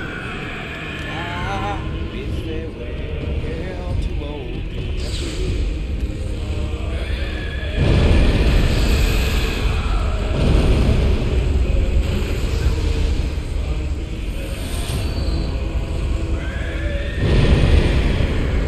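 Flames roar and crackle around a huge beast.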